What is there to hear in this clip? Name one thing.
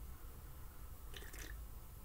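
A man sips a drink from a mug.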